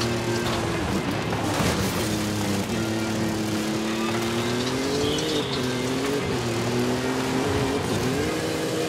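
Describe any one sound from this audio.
Tyres crunch and rumble over rough dirt.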